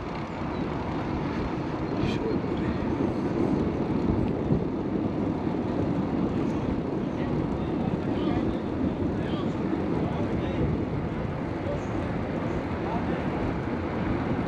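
Tyres hum on smooth asphalt.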